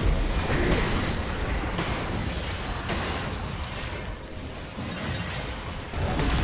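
Game spell effects crackle and whoosh in a fierce fight.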